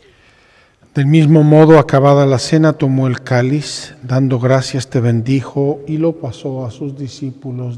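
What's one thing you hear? An elderly man chants loudly through a microphone in a large echoing hall.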